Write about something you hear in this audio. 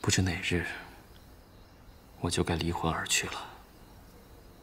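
A young man speaks quietly and sadly, close by.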